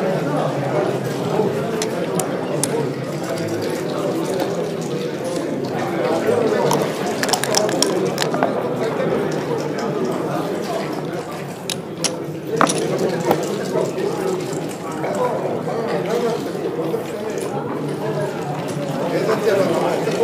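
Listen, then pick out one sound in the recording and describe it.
Plastic game pieces click against each other and the board.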